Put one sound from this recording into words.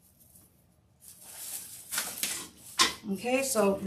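Stiff mesh ribbon rustles and crinkles as a wreath is turned over.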